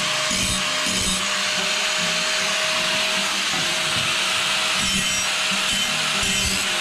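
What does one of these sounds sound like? An angle grinder whines steadily close by.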